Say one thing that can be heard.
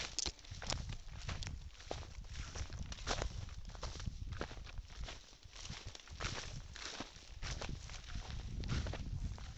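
Dry grass rustles and swishes against legs.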